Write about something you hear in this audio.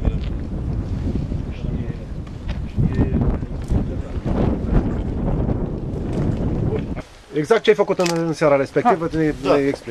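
A middle-aged man speaks calmly outdoors.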